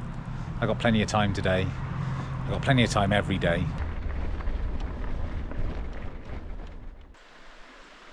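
Bicycle tyres crunch over gravel.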